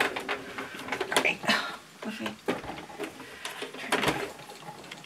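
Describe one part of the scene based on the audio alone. A plastic sewing machine knocks and clatters as it is moved on a table.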